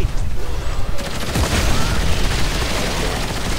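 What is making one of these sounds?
A gun fires in sharp bursts.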